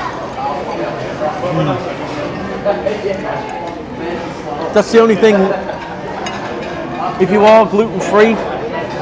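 People chatter in the background of a busy room.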